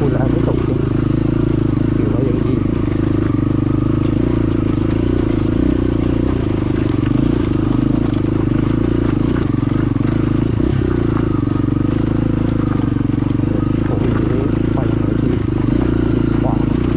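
A dirt bike engine labours as the bike climbs uphill.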